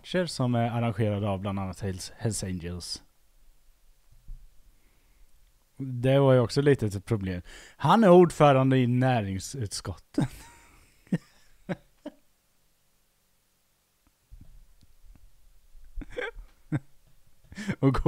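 A man talks with animation into a headset microphone.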